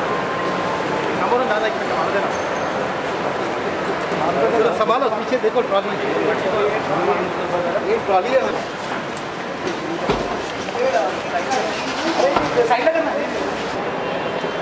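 A crowd of men shouts and chatters excitedly close by.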